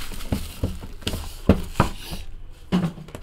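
Plastic wrapping crinkles and rustles as it is pulled off a box.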